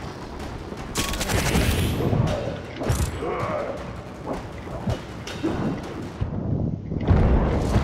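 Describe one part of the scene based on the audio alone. Laser guns fire in sharp, rapid bursts.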